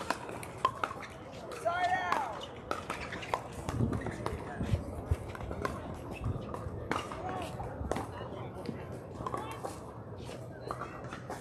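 Paddles pop sharply against plastic balls, over and over, outdoors.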